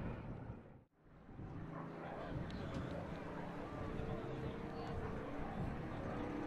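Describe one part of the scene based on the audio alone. A propeller plane's engine drones overhead.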